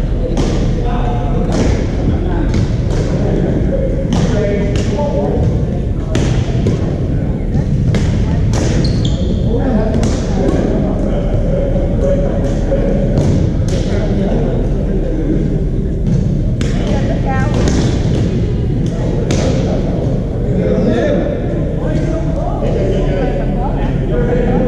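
Badminton rackets hit a shuttlecock with sharp pops, echoing in a large hall.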